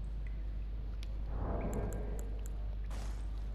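Soft game menu clicks tick a few times.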